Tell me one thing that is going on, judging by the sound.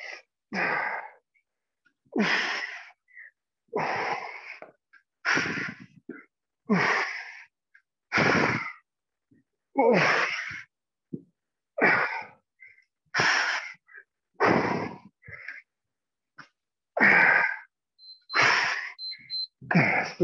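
A man speaks in short, evenly spaced bursts in an echoing hall.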